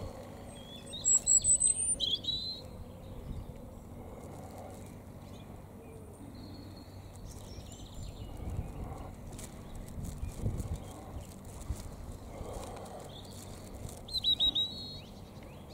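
A small bird chirps in short, high bursts.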